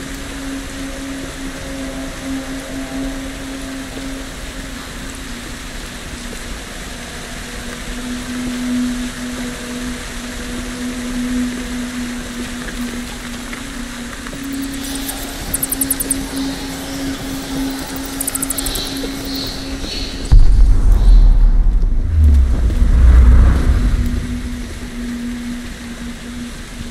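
A torch flame crackles and flutters softly.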